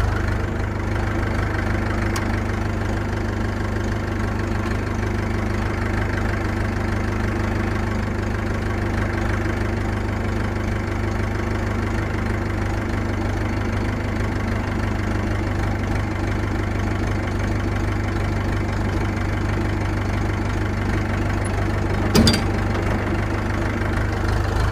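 A rotary mower blade whirs through tall grass.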